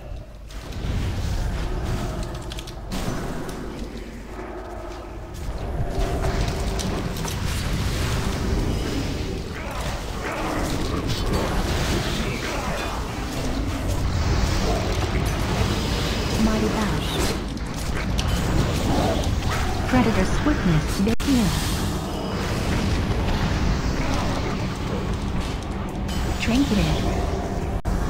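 Game spell effects whoosh and crackle in a battle.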